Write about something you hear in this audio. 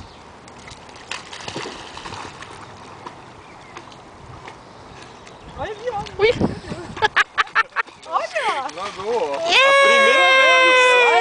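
A dog splashes as it swims through water.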